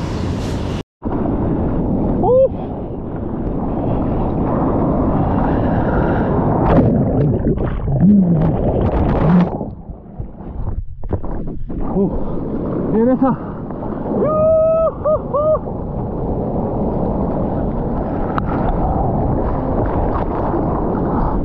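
Foaming water rushes and splashes close by.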